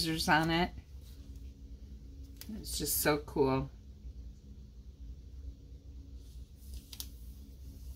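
A sticker peels off a backing sheet with a soft tearing sound.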